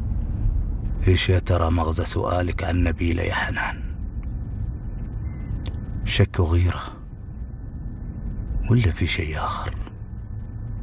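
A man speaks calmly inside a car.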